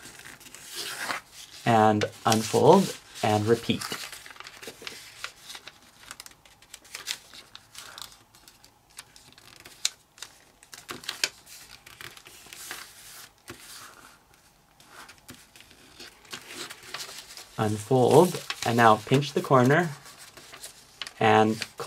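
Paper rustles and crinkles as it is folded and creased.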